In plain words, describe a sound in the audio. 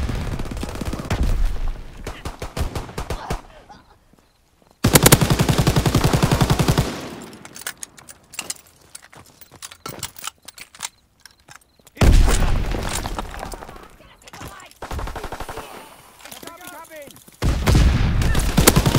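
A machine gun fires rapid bursts at close range.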